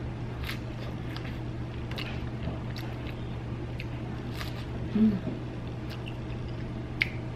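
A woman chews a juicy strawberry with wet crunching sounds close to a microphone.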